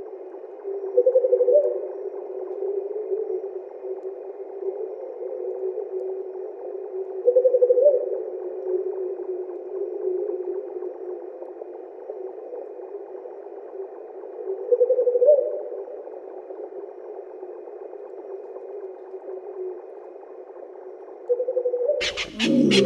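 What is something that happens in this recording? An owl gives short, quick hooting calls that repeat every few seconds.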